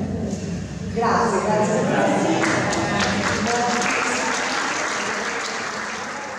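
A man speaks into a microphone through loudspeakers in an echoing hall.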